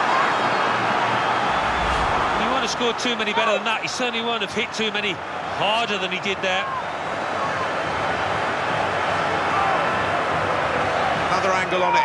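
A large stadium crowd roars and cheers steadily.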